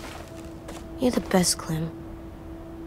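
A young boy speaks gently.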